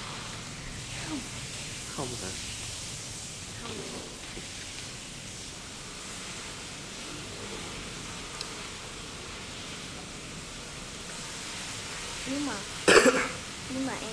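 A young woman speaks briefly and softly close by.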